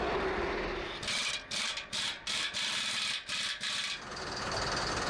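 An impact wrench rattles in short bursts.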